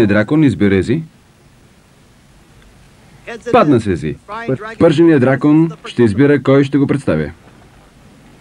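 A middle-aged man speaks loudly and firmly.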